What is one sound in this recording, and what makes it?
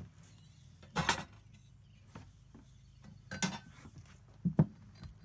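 Metal parts of a lantern clink and scrape as they are handled.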